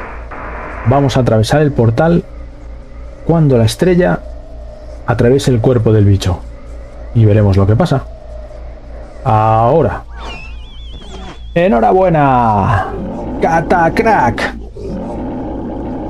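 A huge monster roars and groans loudly, again and again.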